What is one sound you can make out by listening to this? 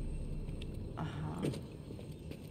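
A woman grunts with effort.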